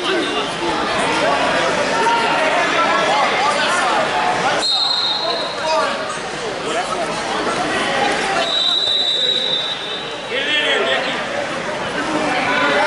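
A crowd chatters and cheers throughout a large echoing hall.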